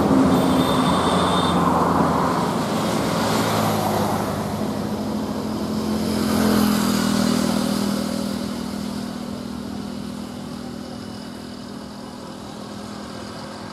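An auto-rickshaw engine putters close by and fades into the distance.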